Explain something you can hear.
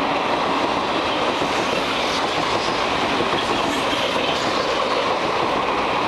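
A train rattles past close by on the tracks, its wheels clattering loudly and steadily.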